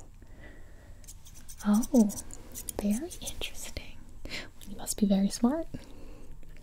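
Scissors snip close to the microphone.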